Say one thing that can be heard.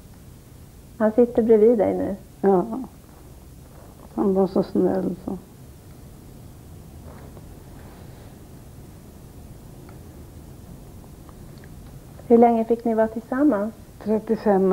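An elderly woman speaks calmly and slowly, close by.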